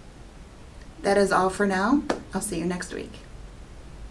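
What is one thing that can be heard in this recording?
A young woman speaks calmly and warmly into a close microphone.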